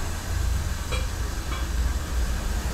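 A lid clinks onto an iron kettle.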